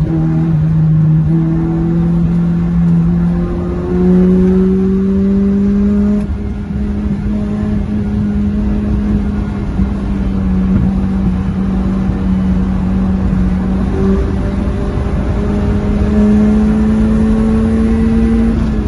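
A car engine roars steadily from inside the cabin, its pitch rising and falling as the car changes gear.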